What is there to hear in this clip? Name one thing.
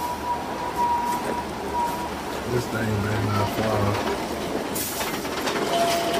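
A heavy truck engine rumbles.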